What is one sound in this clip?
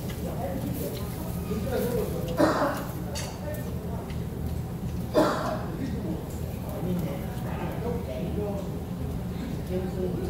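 Meat sizzles on a grill.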